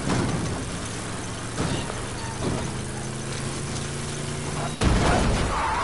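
A car engine drones steadily as the car drives over rough ground.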